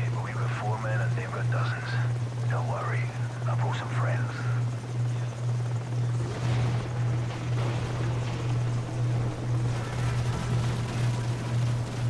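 Heavy rain pours down.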